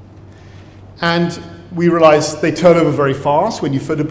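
A middle-aged man speaks calmly into a microphone, as if giving a talk.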